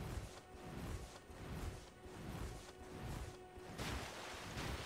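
Footsteps thud steadily on soggy ground.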